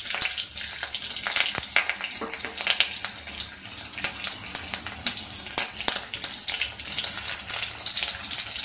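Chopped vegetables drop into a pan.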